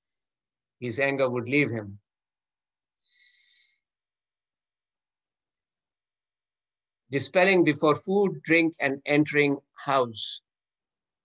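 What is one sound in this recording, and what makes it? A man speaks calmly over an online call, as if giving a lecture.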